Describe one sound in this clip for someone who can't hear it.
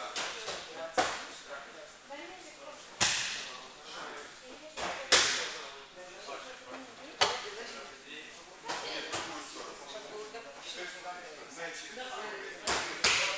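Bodies thud onto a padded mat.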